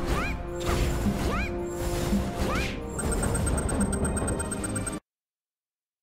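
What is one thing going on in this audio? Triumphant game music plays with chiming effects.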